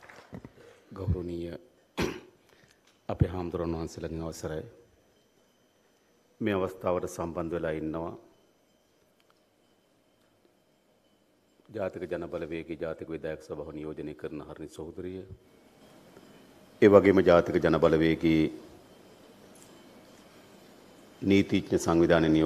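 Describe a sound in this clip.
A man speaks calmly and firmly through a microphone, pausing between phrases.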